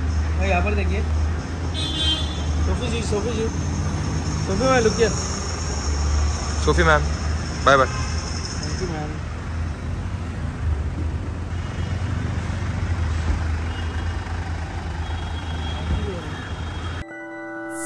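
A car engine idles with a low steady hum.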